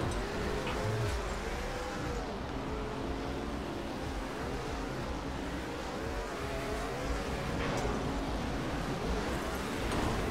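A futuristic racing engine roars steadily at high speed.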